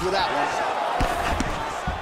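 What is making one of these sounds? A punch lands with a dull thud.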